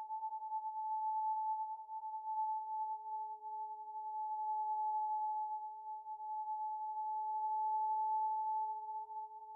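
A synthesizer plays a steady electronic drone that slowly swells and fades.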